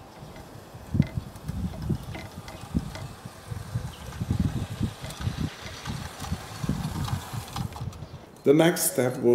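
A model train rumbles along a track.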